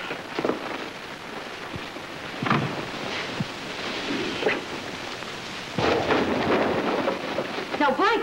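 Bedsheets rustle and flap.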